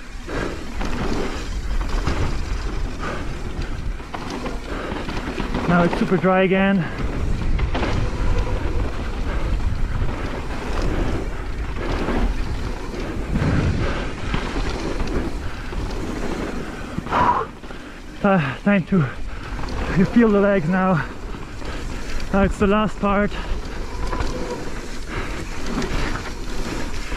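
Bicycle tyres crunch and rumble over a dirt trail.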